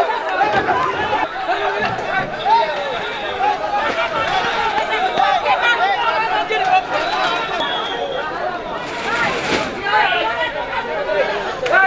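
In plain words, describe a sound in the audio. A man shouts angrily close by.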